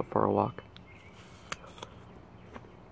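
A man bites into a crisp apple.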